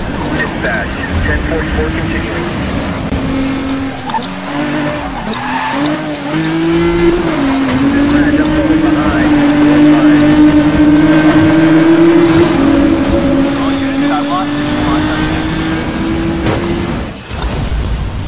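A sports car engine roars at high revs, shifting pitch as it speeds up and slows.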